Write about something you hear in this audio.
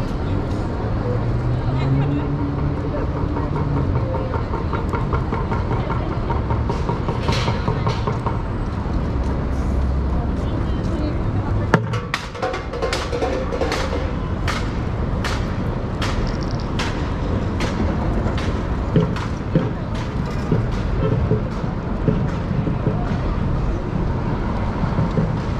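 A bicycle rattles and clicks as it rolls over paving stones.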